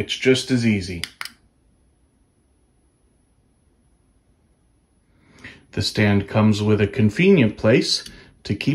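A small plastic remote button clicks.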